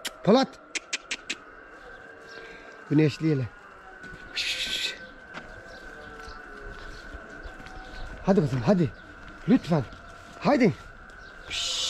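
A young calf bleats several times nearby.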